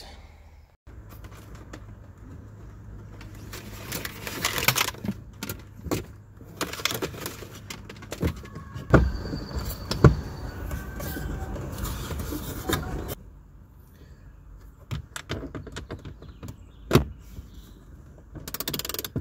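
Plastic parts click and knock as a device mount is fitted and adjusted.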